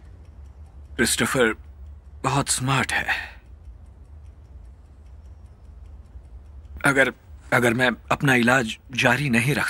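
A young man speaks softly and haltingly, close by.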